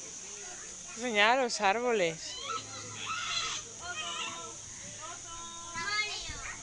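A baby girl babbles and squeals happily close by.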